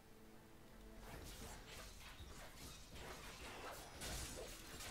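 Game battle effects clash and burst.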